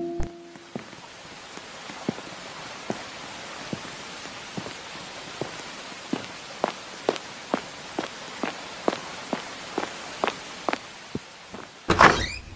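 Footsteps thud steadily and gradually quicken.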